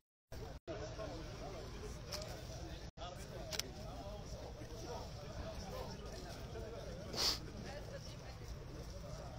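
Several men talk quietly nearby outdoors.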